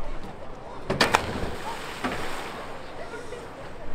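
A person splashes into water from a height.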